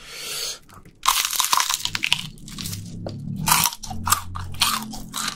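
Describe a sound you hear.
Crispy fried chicken crunches loudly as a young man bites and chews close to a microphone.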